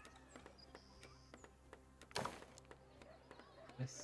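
A wooden building is placed with a soft thud.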